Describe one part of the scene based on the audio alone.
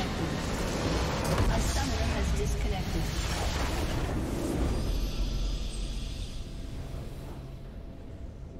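A huge explosion booms and rumbles, then fades.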